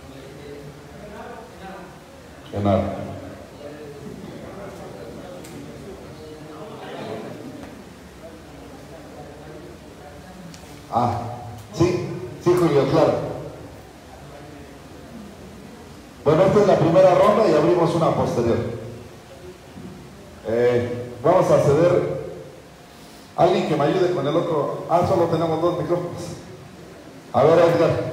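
A man speaks to an audience through loudspeakers in a large echoing hall.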